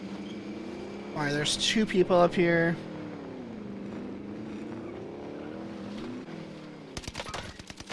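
A vehicle engine hums and revs.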